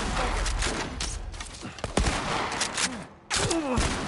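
A gunshot bangs loudly.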